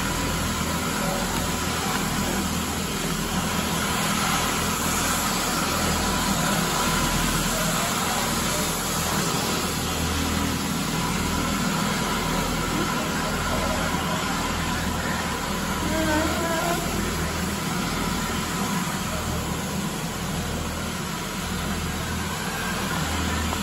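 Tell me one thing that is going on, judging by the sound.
A floor scrubbing machine hums and whirs steadily as it drives across a hard floor.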